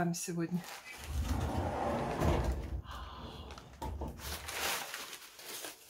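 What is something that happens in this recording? Crumpled paper rustles.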